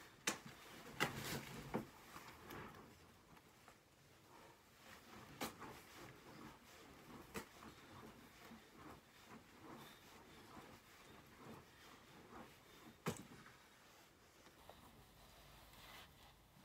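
A young man's jacket rustles as he swings his arms.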